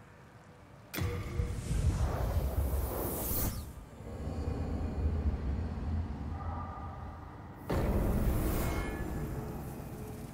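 A loud magical whoosh swells and roars.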